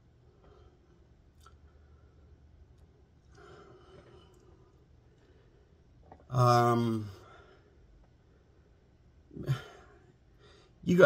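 An older man speaks quietly and calmly close by.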